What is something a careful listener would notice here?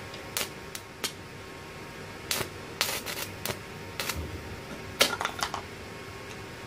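An electric welding arc crackles and pops in short bursts.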